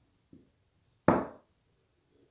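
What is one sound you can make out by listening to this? A small cap knocks once against a glass bottle.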